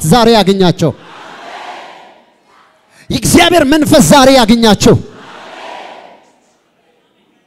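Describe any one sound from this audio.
A crowd cheers and calls out in response.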